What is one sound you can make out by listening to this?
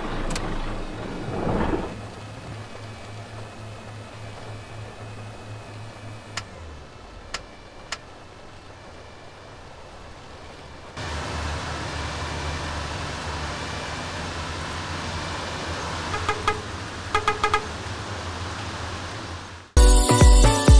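A bus engine idles with a low, steady rumble.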